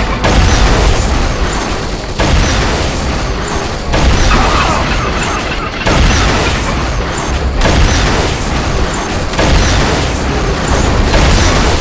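A mounted gun fires in rapid bursts.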